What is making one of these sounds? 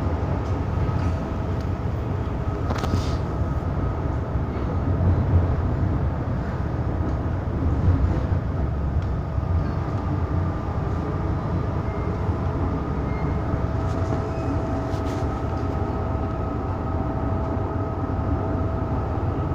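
A subway train rumbles and hums steadily along the tracks.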